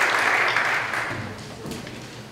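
An audience applauds in a large echoing hall, then the applause fades.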